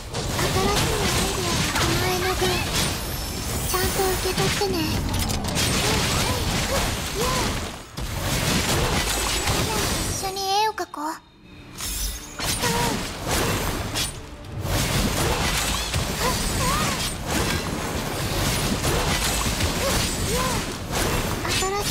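Swords clash and blasts explode in rapid bursts.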